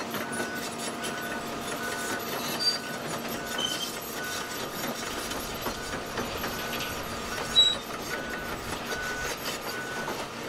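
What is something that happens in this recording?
A machine's warning alarm beeps at a steady, even pace.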